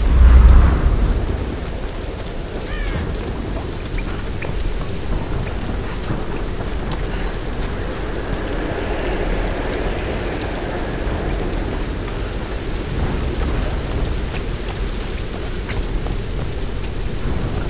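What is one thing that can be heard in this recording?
Footsteps tread on wet ground and wooden steps.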